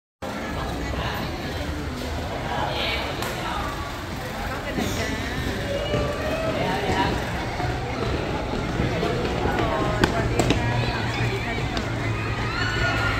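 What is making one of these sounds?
A crowd of young fans chatters and squeals excitedly nearby.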